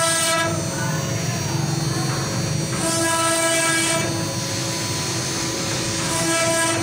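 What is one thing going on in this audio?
A spindle motor whines steadily at a high pitch.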